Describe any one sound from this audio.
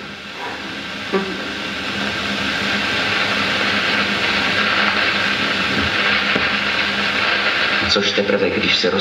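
Water rushes and splashes heavily.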